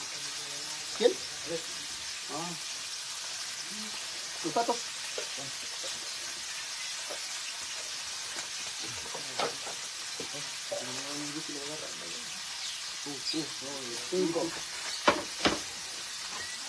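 Dishes clatter.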